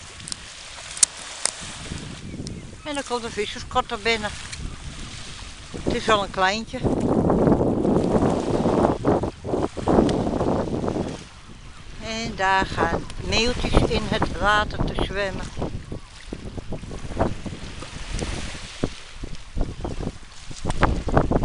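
Wind gusts outdoors by open water.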